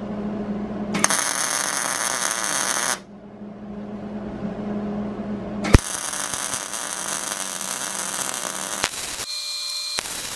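A welding arc crackles and sizzles loudly.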